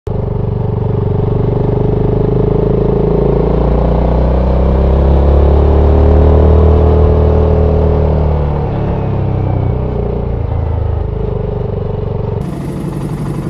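A motorcycle engine roars and rises and falls in pitch as it rides along.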